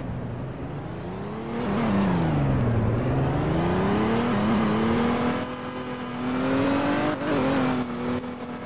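A car engine hums and revs up and down as it drives.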